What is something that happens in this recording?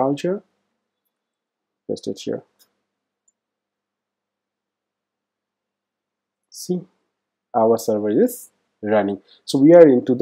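A man speaks calmly into a close microphone, in short phrases with pauses.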